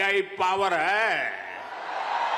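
An elderly man speaks loudly into a microphone.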